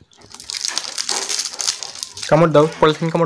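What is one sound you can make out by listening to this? A plastic candy wrapper crinkles close by.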